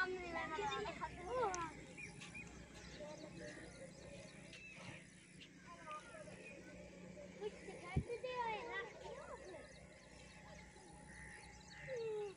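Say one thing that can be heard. Children call out to each other at a distance outdoors.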